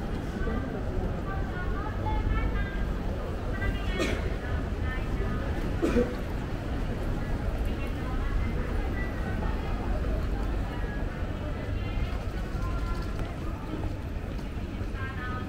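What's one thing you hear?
Footsteps of many people walk on paving outdoors.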